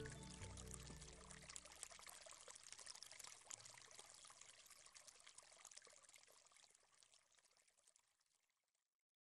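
A waterfall pours steadily into a rocky stream and slowly fades away.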